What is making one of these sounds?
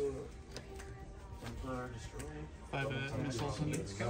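Playing cards slide and tap softly on a cloth mat.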